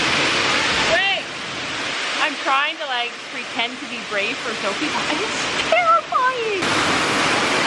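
A middle-aged woman talks animatedly close by.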